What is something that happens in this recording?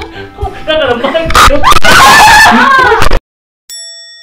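Young women shriek and laugh loudly, close by.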